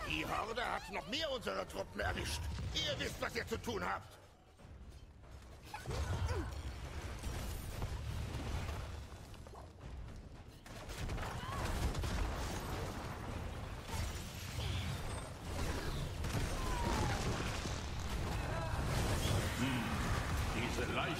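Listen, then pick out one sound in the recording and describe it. Spell blasts and explosions crackle and boom in a game battle.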